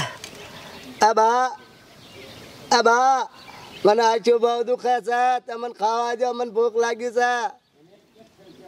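A man sings out in loud, drawn-out bursts close by.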